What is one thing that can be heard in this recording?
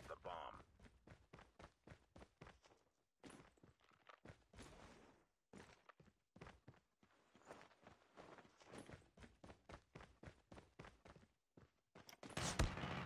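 Quick footsteps patter on hard ground.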